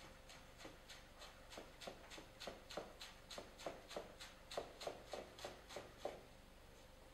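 A chef's knife chops herbs rapidly on a plastic cutting board.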